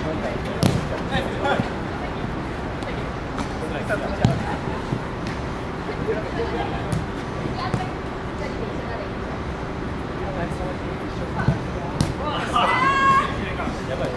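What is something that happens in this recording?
Young players call out to each other outdoors.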